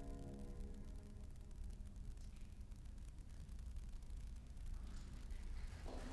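A cello plays a soft, long final note that slowly fades away.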